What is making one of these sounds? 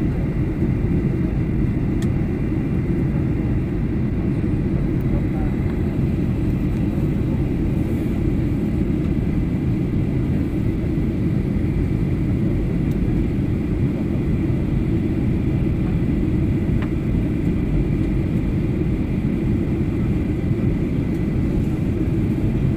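A jet engine roars steadily with a low, constant rumble inside an aircraft cabin.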